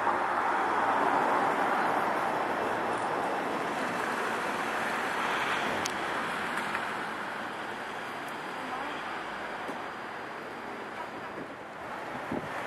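A train rumbles past along the tracks, slowly fading.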